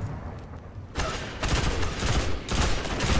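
A gun fires in rapid, loud bursts.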